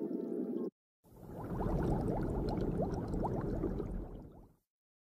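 Water bubbles and gurgles in an aquarium.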